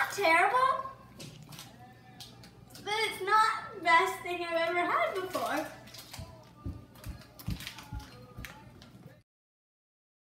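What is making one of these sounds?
A young girl talks playfully close by.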